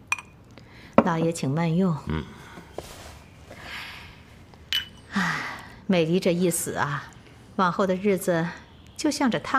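A woman speaks calmly and sweetly.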